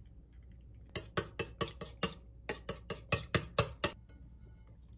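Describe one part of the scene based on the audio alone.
A fork beats eggs against a bowl with quick taps.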